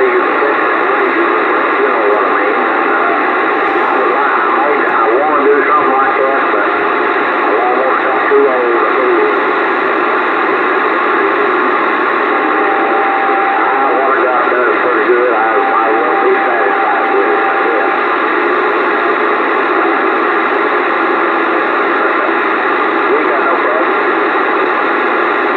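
A radio receiver hisses and crackles with steady static.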